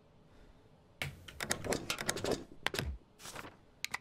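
A heavy mechanical tray slides out with a clunk.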